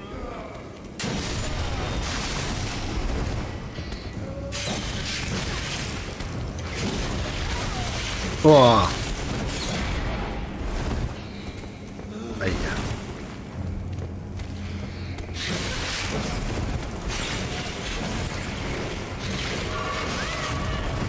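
Weapons clash and thud.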